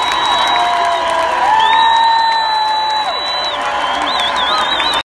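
A large crowd cheers.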